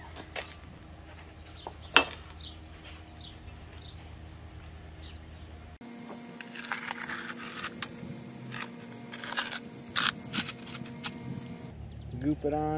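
A utility knife scrapes and slices through roofing material.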